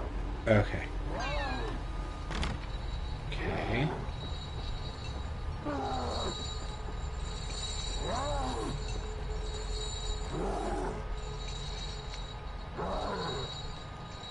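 A man talks calmly into a close microphone in short bursts.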